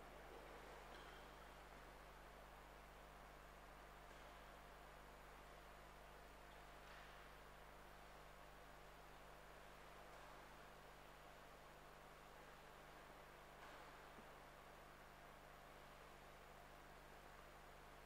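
A man murmurs prayers softly in a large echoing hall.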